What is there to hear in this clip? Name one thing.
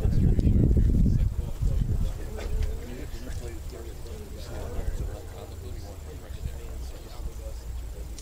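A crowd of spectators murmurs and chatters nearby outdoors.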